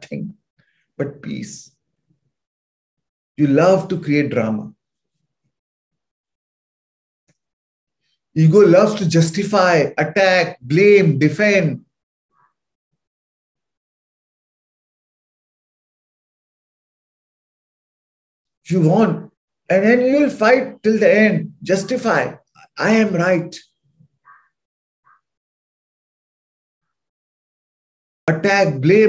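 A man speaks calmly over an online call, in bursts with long pauses.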